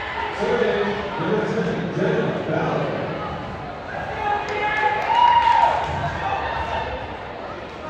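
Young women on a team call out and chant together in a large echoing gym.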